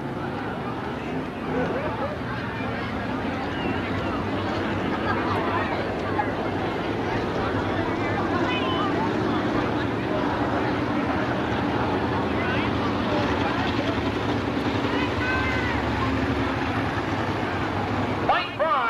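A racing car engine roars loudly as the car drives around a dirt track.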